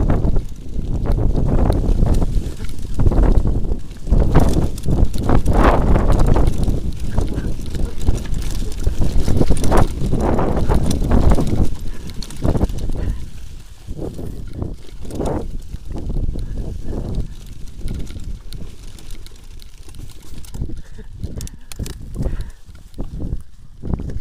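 Bicycle tyres rumble and rattle over a bumpy dirt trail.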